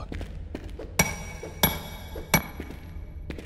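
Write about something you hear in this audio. A hammer strikes rock with sharp metallic clanks.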